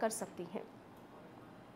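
A middle-aged woman speaks forcefully into a microphone.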